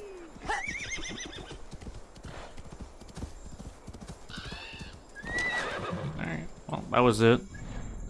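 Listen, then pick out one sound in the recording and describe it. A horse's hooves crunch steadily through snow.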